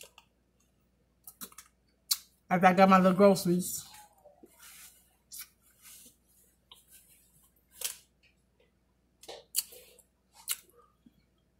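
A woman smacks her lips and chews while eating.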